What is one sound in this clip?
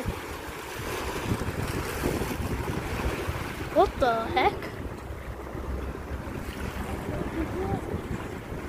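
Small waves lap and wash over pebbles on a shore.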